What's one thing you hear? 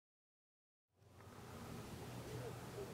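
Gentle water laps softly at a rocky shore.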